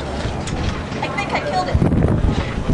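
A second woman cries out nearby in distress.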